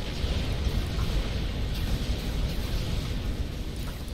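A turret fires a laser beam with a buzzing zap.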